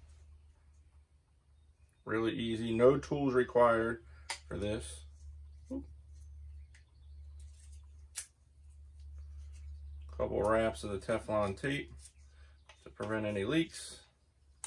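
Small metal parts click as a man handles a shower head.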